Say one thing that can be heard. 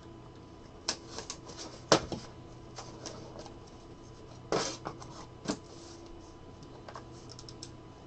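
Small plastic clicks and taps come from a card case being opened and handled.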